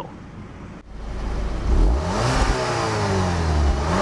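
A car exhaust roars as the engine revs.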